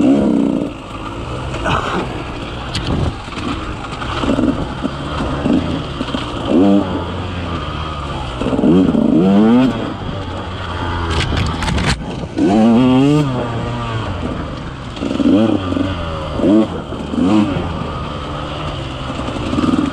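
Tyres crunch over dry leaves and bark.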